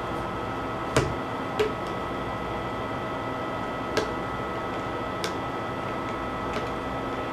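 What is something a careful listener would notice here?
A knife taps and cuts against a table.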